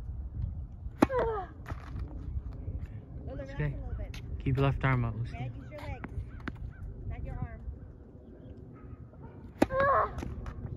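A tennis racket strikes a ball with a sharp pop.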